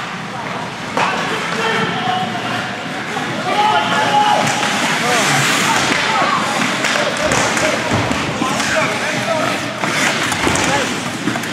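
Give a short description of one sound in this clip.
Young men shout to each other in a large echoing rink.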